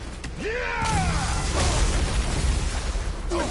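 Fire roars in a loud burst.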